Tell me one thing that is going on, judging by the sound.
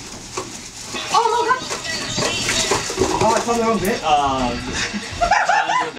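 Young people shout and cheer excitedly close by in a small room.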